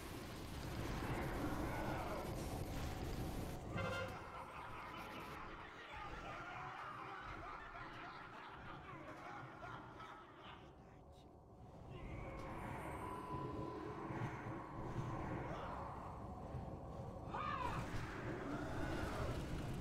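Magic spells crackle and boom during a fantasy battle.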